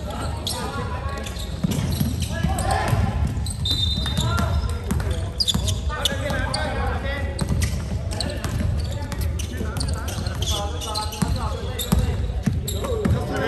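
Sneakers squeak sharply on a hard floor, echoing in a large hall.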